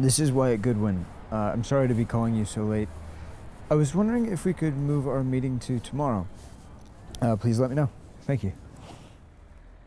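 A man talks quietly on a phone, close by.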